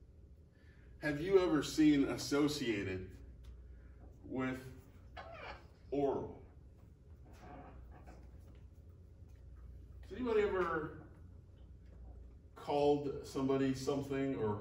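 A man speaks with animation, lecturing in a room with a slight echo.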